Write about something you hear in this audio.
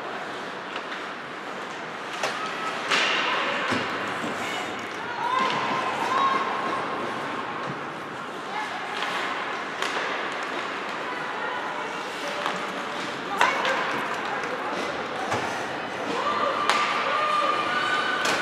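Skates scrape and hiss across ice in a large echoing arena.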